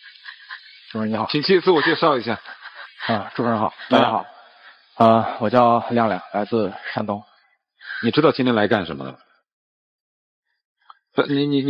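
A young man speaks calmly through a headset microphone.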